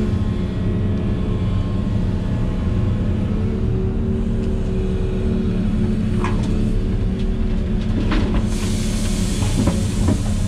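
An excavator's diesel engine rumbles steadily from inside the cab.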